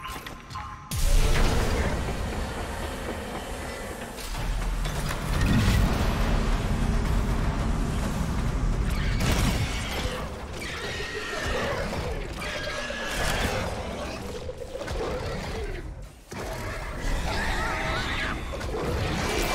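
Thruster boots hiss steadily.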